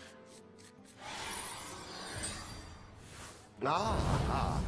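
A magical whoosh and shimmer play as a card is cast.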